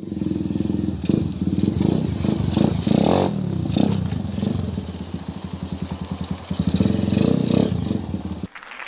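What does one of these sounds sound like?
A dirt bike engine revs up briefly several times.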